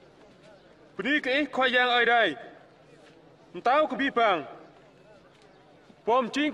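A man speaks loudly and solemnly outdoors.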